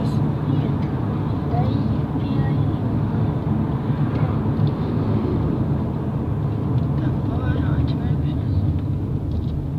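Tyres rumble steadily on the road.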